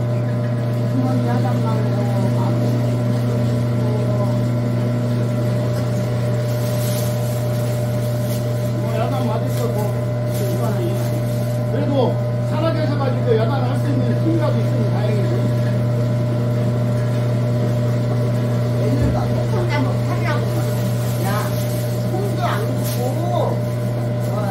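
An elderly woman talks nearby.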